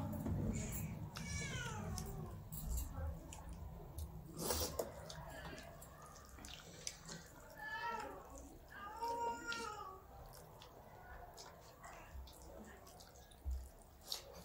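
Fingers squelch through soft rice and curry close by.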